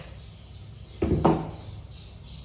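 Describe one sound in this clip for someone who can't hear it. A metal wok clanks down onto a stove.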